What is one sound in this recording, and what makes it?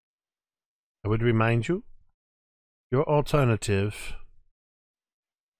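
A man speaks calmly into a microphone over an online call.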